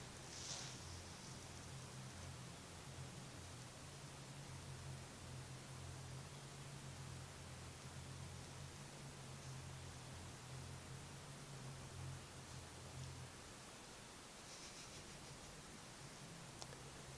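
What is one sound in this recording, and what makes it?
A woman chews food close by.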